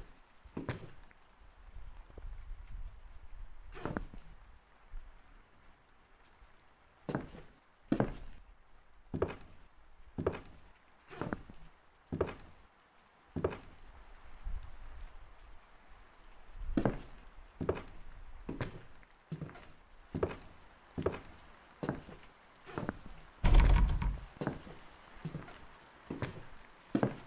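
Slow footsteps thud on a wooden floor indoors.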